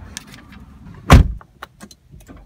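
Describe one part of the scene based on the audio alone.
A car door thuds shut.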